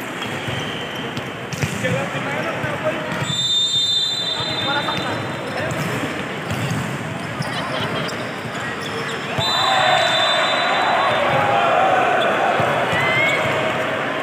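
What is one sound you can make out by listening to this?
Young men shout and call out to each other across the court.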